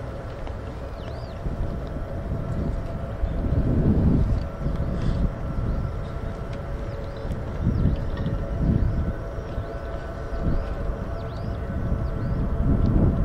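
Wind rumbles in gusts against a microphone outdoors.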